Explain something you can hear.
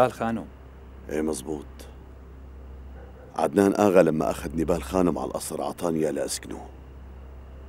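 A second man answers in a low, serious voice, close by.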